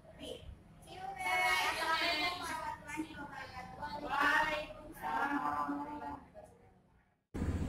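Young women talk and laugh together in a room.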